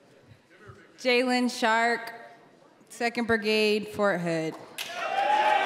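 A young woman speaks loudly and with energy into a microphone in a large echoing hall.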